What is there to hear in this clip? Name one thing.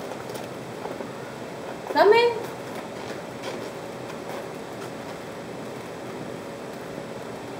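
Plastic cling wrap crinkles as it is pulled off a roll.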